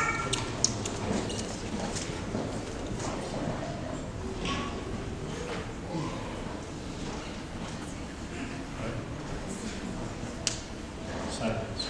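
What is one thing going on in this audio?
A congregation murmurs and chats in a large echoing hall.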